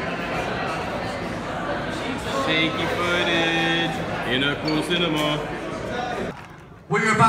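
A crowd of people chatters loudly.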